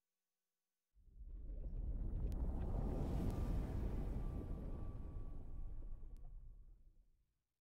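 A deep fiery rumble swells up, roars and then fades away.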